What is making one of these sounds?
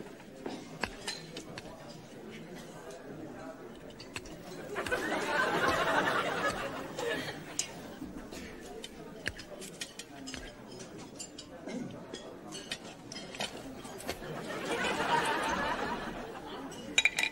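China plates and serving utensils clink softly.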